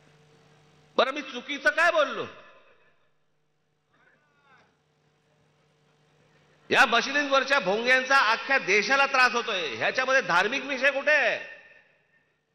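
A man speaks forcefully into a microphone, heard over loudspeakers outdoors.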